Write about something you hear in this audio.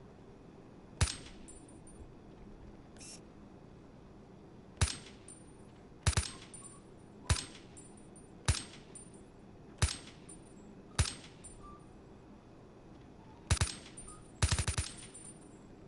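A rifle fires single sharp shots at uneven intervals.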